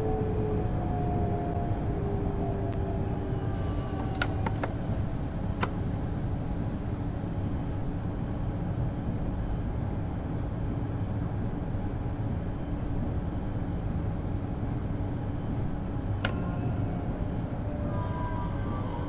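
A train engine hums and rumbles steadily while rolling along the tracks.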